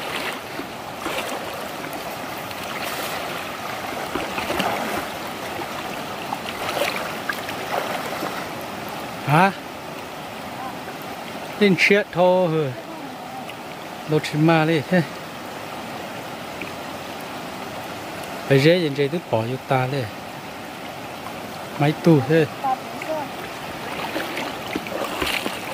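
A shallow stream gurgles and splashes around wading legs.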